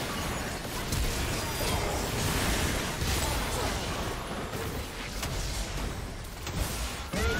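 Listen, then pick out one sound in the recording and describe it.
Magic spells whoosh and crackle in a busy fight.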